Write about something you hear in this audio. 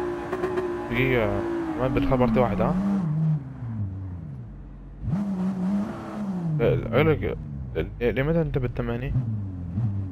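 A racing car engine drops in pitch and revs up and down as the car brakes and shifts gears.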